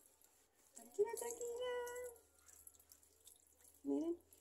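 Water pours and splashes from a cup.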